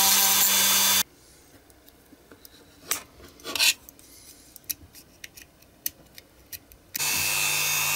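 Plastic parts click and tap as they are handled.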